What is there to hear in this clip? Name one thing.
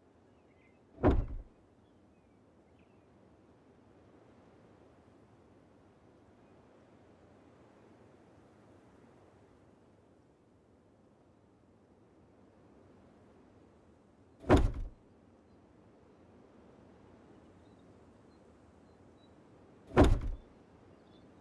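A heavy wooden box thuds down onto a floor.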